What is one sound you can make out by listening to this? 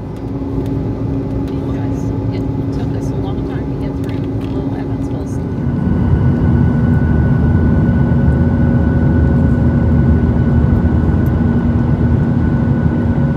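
A jet engine roars steadily with a low rumble.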